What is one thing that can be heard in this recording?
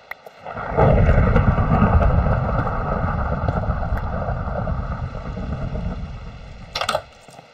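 A pickaxe chips rapidly at stone blocks.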